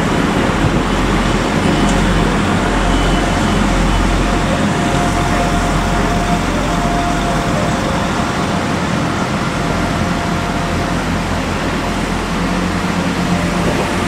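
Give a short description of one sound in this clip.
A diesel train rumbles past along the platform.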